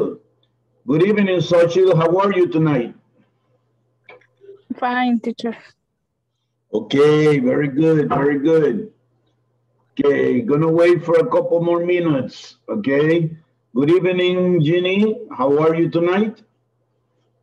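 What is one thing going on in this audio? A middle-aged man speaks with animation over an online call.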